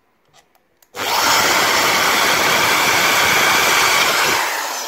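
An electric drill whirs loudly as it bores into wood.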